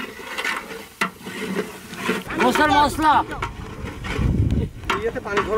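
Powder pours softly into a metal pot.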